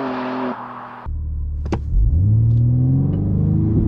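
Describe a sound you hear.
A car engine roars from inside as it accelerates.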